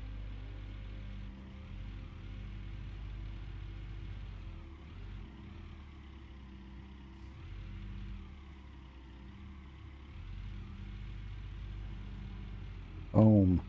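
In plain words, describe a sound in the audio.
Hydraulics whine as an excavator arm swings.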